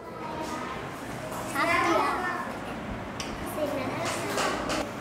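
A young girl speaks brightly.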